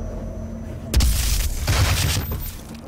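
A heavy energy weapon fires with a loud, crackling blast.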